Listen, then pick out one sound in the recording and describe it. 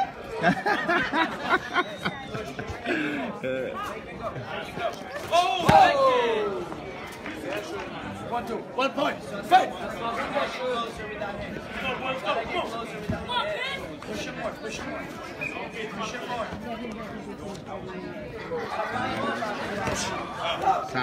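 A crowd of spectators chatters and shouts nearby in a large echoing hall.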